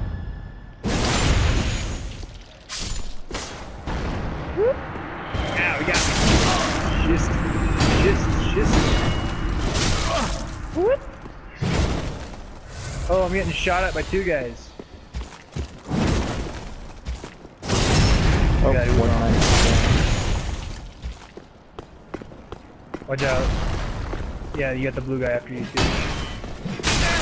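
Swords clash and strike with heavy metallic blows.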